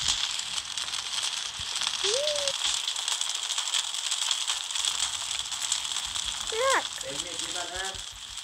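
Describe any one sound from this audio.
Lava bubbles and crackles steadily.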